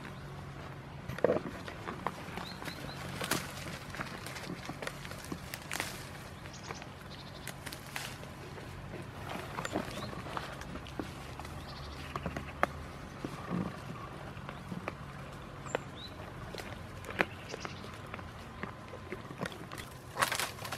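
Goats tear and munch leaves from a bush close by.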